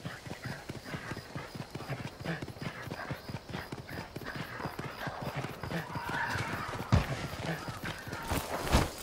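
Quick footsteps run over grass and stone.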